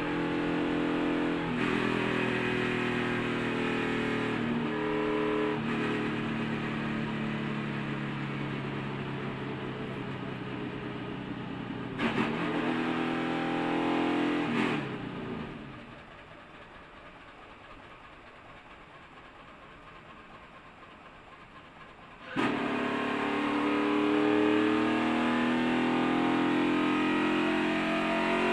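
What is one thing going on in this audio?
A race car engine roars loudly up close, drops away for a few seconds, then roars again.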